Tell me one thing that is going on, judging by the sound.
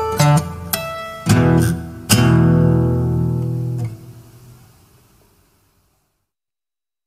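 An acoustic guitar plays a few last strummed chords that ring out and fade away.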